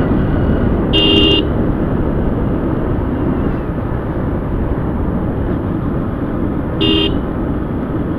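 A motorcycle horn beeps twice in short bursts.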